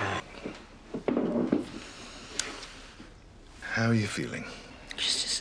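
An elderly man speaks softly and earnestly.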